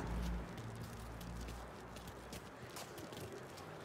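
Footsteps tread down wooden stairs.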